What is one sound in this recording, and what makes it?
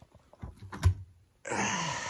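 A hand picks up a rubber playground ball.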